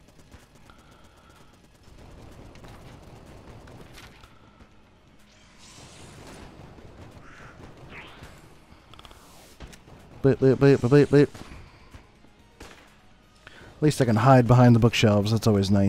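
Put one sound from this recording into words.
Small guns fire in quick bursts.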